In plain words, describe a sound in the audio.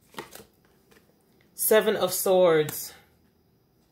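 Playing cards rustle and flick as hands shuffle them.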